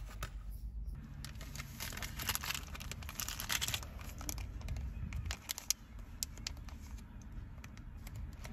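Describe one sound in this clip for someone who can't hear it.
A plastic sleeve crinkles and rustles in someone's hands.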